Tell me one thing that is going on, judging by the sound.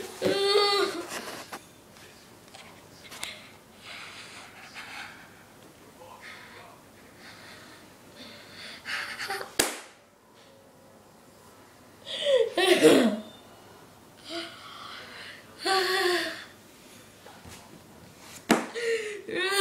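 A young person close by shouts and cries out loudly.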